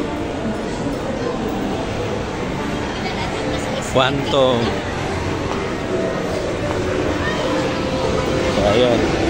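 A crowd murmurs in a large indoor hall.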